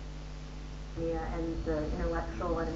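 A young woman speaks calmly, heard through a small speaker.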